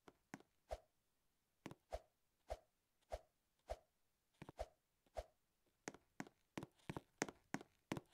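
Footsteps patter as a game character runs.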